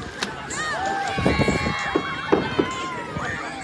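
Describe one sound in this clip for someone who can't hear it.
Water splashes loudly as a person jumps in.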